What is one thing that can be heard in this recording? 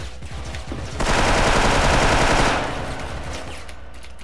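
An explosion roars loudly and then dies away.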